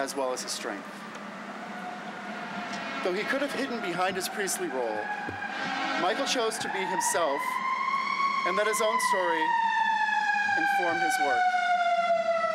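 A man reads out aloud in a theatrical voice outdoors.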